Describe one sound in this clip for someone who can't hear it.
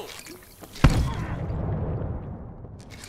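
A gunshot bangs loudly, followed by a burst of heavy impacts.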